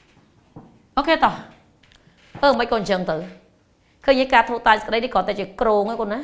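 A woman speaks clearly and with animation, close by.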